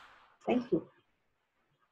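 A middle-aged woman says a few words through a headset microphone on an online call.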